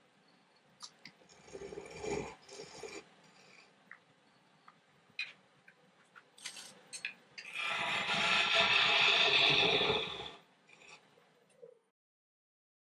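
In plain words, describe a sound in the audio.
A wood lathe hums as it turns.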